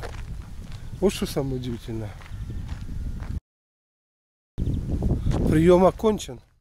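An older man talks with animation close to a microphone.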